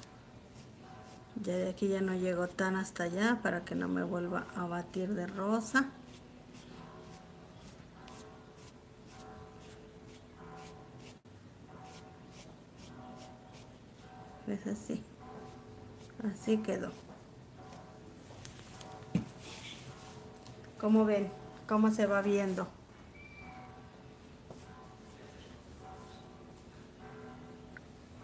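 A paintbrush brushes softly against fabric.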